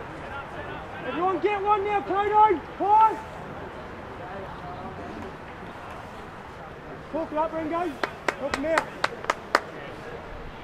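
Men shout across an open field.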